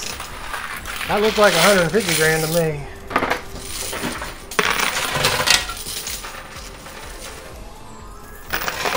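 Coins clink and clatter as a coin pusher machine shoves them along.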